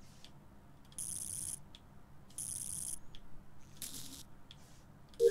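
Wires snap into place with short electronic chimes in a video game.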